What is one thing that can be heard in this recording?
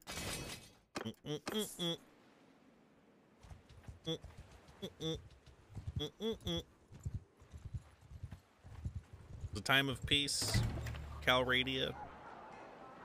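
A man talks into a close microphone with animation, pausing now and then.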